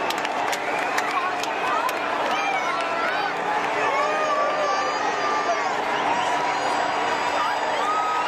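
A large stadium crowd cheers and shouts throughout.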